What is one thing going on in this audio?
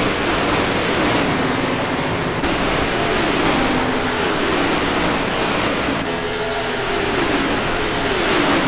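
Many race car engines roar loudly at high speed, their pitch sliding down as they pass.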